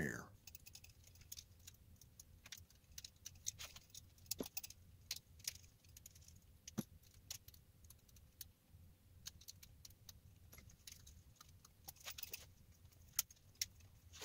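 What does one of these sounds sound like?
Small metal parts click and tap softly.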